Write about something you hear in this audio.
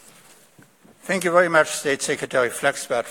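An elderly man speaks calmly into a microphone over loudspeakers in a large hall.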